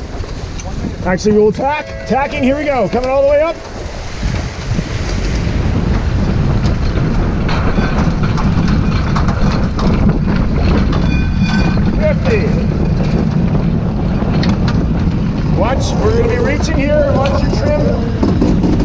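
A man calls out loudly in the wind.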